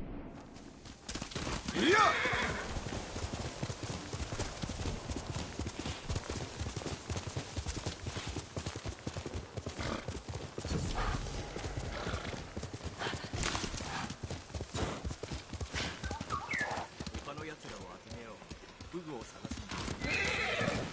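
A horse gallops steadily with rapid hoofbeats.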